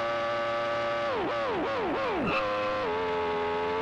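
A racing car engine drops sharply in pitch through several quick downshifts.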